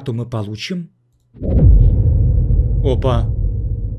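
A playing card is dealt onto a table with a soft slap.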